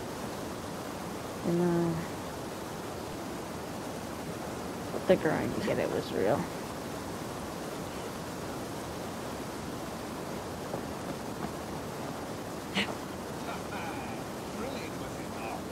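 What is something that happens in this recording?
Footsteps and hands knock on wooden ladder rungs during a climb.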